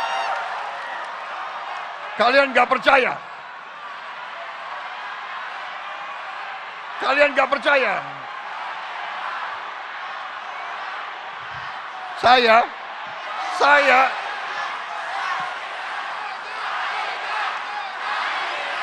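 A large crowd cheers and murmurs throughout.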